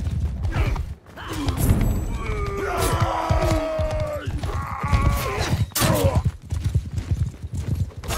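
Horses gallop past on hard ground.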